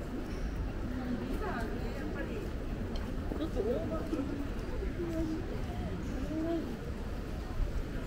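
A woman talks briefly nearby.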